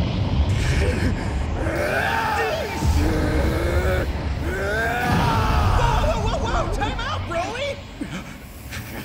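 A man roars and screams with strain.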